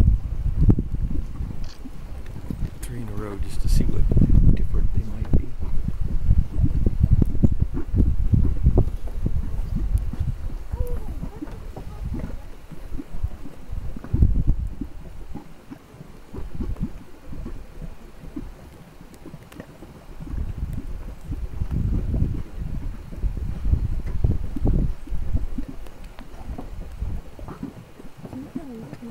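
Thick mud bubbles and plops with deep, wet bursts.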